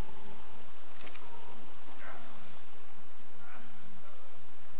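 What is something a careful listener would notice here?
A hatchet swings through the air and whooshes.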